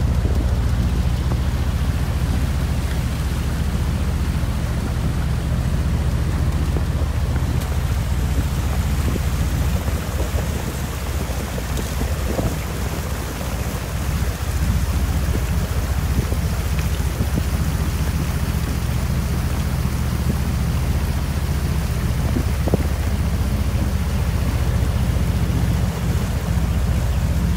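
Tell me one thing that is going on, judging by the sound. A boat engine drones steadily close by.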